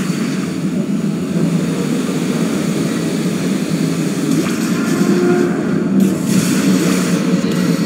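Boot thrusters hiss steadily.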